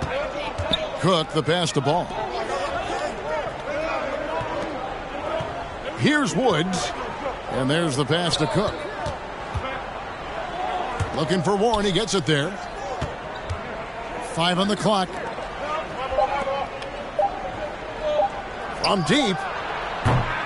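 Basketball shoes squeak sharply on a hardwood court, again and again.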